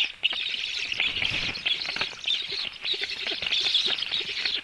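A black stork lands on a nest with heavy wingbeats.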